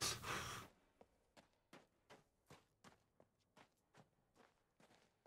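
Footsteps tap steadily on the ground.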